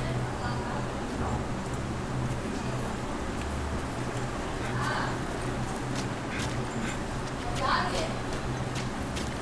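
Footsteps tread on grass and dirt.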